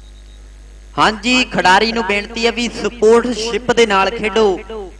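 A man announces loudly over a loudspeaker outdoors.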